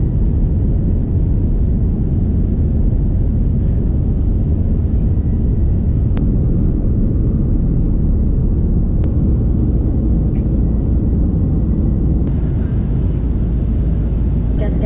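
An aircraft's engines roar in a low, steady rumble heard from inside the cabin.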